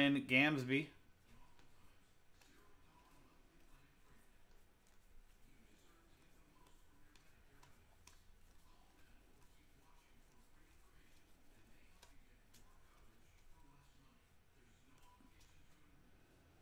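Cards flick and rustle softly as they are shuffled through by hand.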